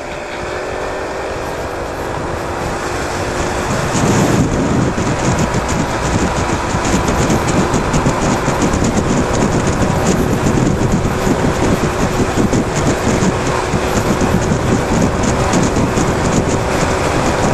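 Wind rushes loudly past the rider, growing louder after a few seconds.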